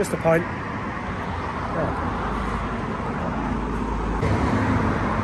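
A man talks calmly and close up.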